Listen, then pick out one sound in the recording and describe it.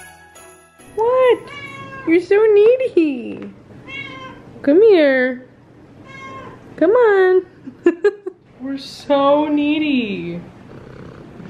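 A cat meows loudly and repeatedly close by.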